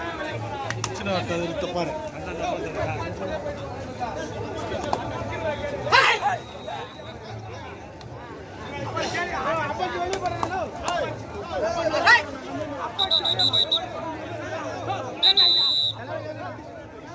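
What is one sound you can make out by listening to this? A crowd of young men shouts and chatters outdoors.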